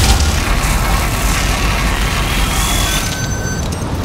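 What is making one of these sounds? A laser weapon fires in a steady buzzing beam.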